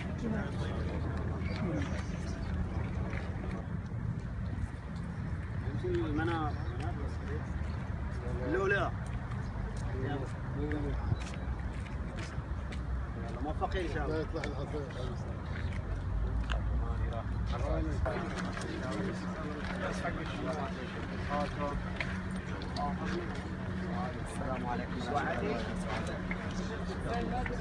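A crowd of men murmur and talk nearby outdoors.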